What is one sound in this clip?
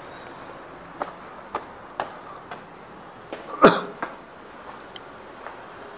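Footsteps tap on a hard floor indoors.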